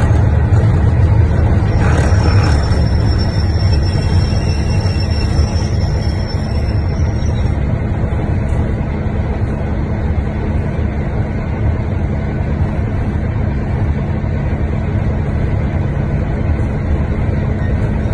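A diesel engine rumbles steadily from inside a train's driving cab.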